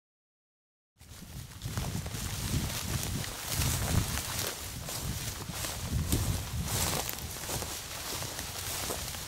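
Wind blows outdoors in gusts.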